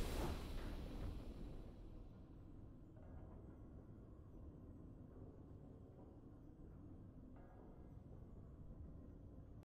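A triumphant game fanfare rings out and slowly fades into low rumbling music.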